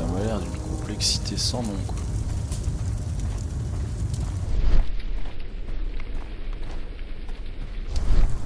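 Machinery rumbles low and steadily in a large echoing hall.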